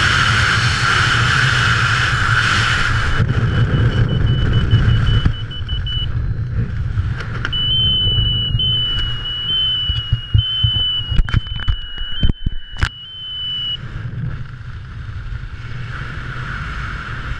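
Wind roars loudly past the microphone.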